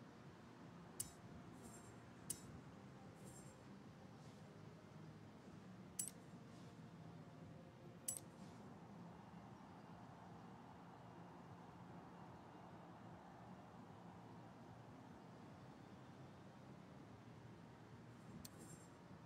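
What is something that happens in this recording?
Short electronic menu clicks sound now and then.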